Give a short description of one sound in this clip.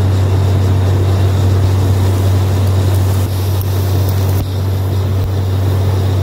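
Water and mud gush and spray from a borehole.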